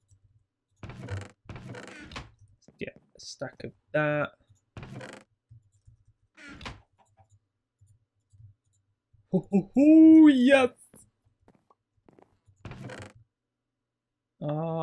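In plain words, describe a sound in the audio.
A wooden chest creaks open and thumps shut several times.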